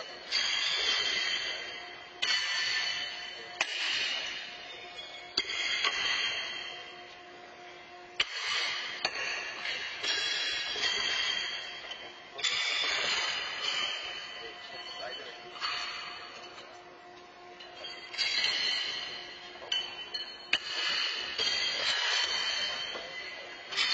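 Thrown horseshoes clang against steel stakes, ringing and echoing in a large hall.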